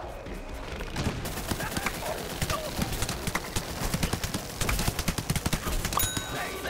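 Rapid gunfire crackles and pops.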